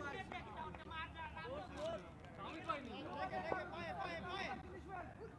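Several men talk and call out loudly at a distance, outdoors.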